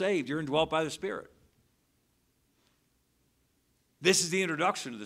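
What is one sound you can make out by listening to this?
A middle-aged man speaks steadily through a microphone.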